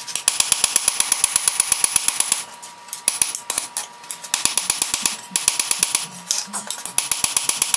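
A hammer strikes hot metal on an anvil in quick, ringing blows.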